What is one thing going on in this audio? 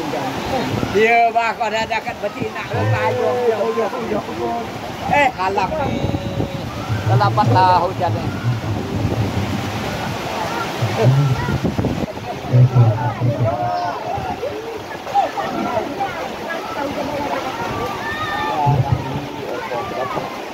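Young women shout and call out across a field.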